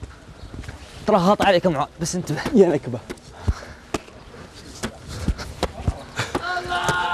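Men shout to each other outdoors.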